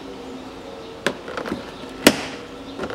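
A car door handle clicks as it is pulled.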